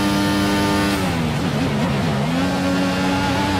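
A racing car engine drops in pitch through quick gear changes as it slows.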